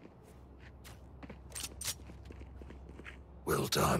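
A pistol clicks as it is drawn.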